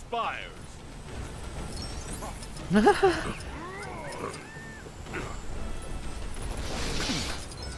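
Cartoonish zaps and whooshes ring out during a fight.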